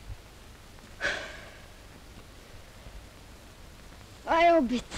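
A young woman cries out nearby.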